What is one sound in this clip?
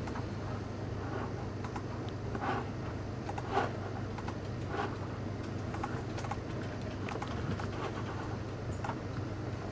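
Electronic game sounds blip and chirp from a small speaker.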